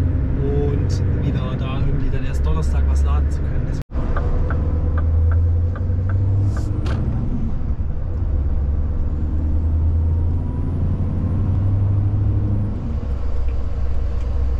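A vehicle engine hums steadily from inside the cab.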